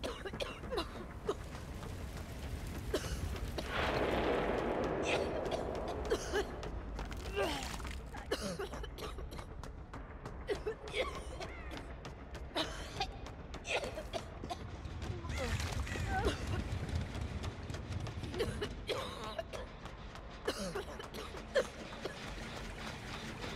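Quick footsteps run across hard floors.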